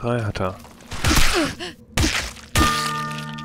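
A large creature is struck with heavy blows.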